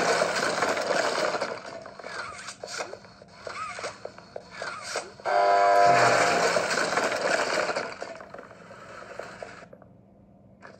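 Electronic game sounds and music play from a small tablet speaker.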